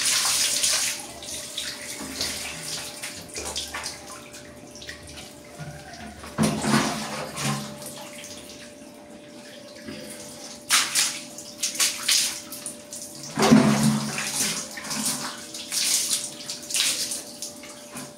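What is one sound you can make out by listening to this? Water splashes and trickles onto a hard floor.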